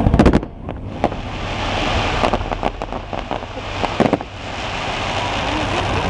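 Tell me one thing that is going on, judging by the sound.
Fireworks crackle and sizzle.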